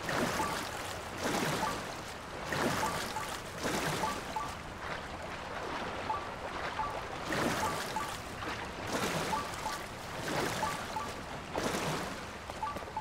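Water splashes in rhythmic surges as someone swims.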